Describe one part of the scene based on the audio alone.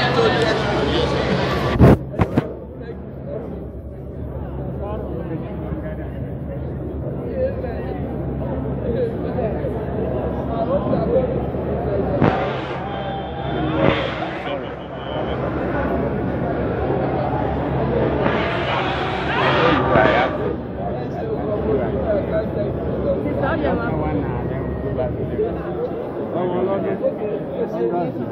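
A woman talks and laughs cheerfully close by.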